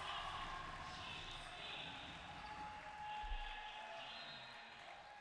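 Spectators murmur and chatter in a large echoing gym.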